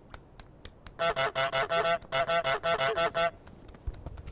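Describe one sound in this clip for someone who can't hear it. A goose honks loudly several times.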